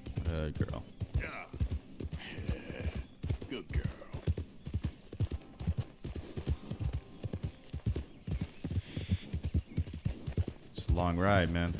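Horse hooves thud steadily on a dirt path at a trot.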